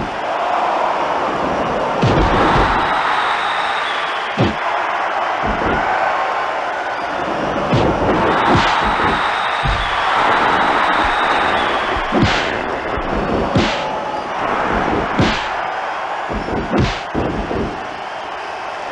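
A large crowd cheers steadily.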